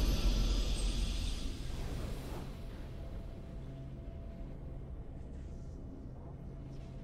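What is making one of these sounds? A triumphant game fanfare blares and then fades into soft music.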